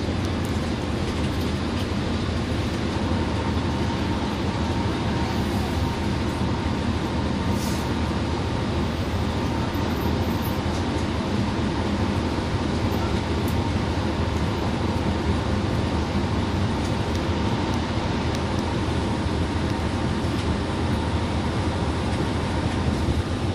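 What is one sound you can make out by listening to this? Tyres roar on a highway.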